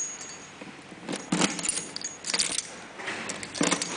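Keys jingle and rattle close by.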